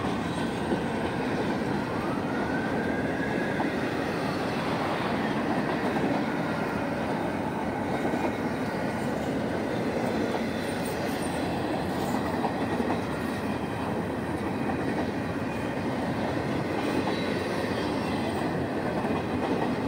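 A long freight train rumbles and clatters past close by.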